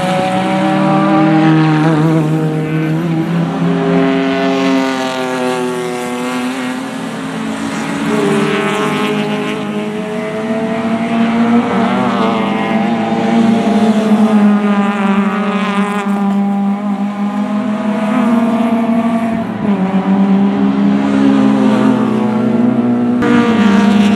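Race car engines roar and whine as the cars speed past, rising and falling in pitch.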